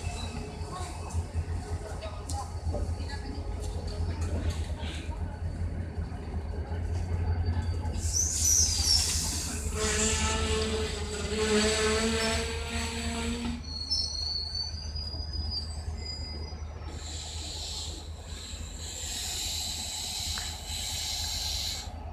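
A train engine rumbles low and steadily.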